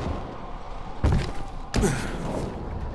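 A heavy thump sounds as someone lands after a jump.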